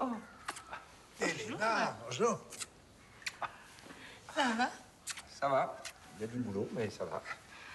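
Several adults talk over one another warmly, close by.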